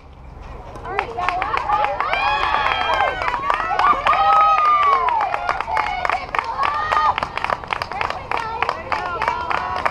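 Young women shout and cheer with excitement outdoors.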